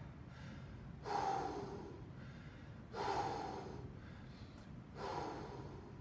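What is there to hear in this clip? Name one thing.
A man speaks in short bursts in an echoing hall.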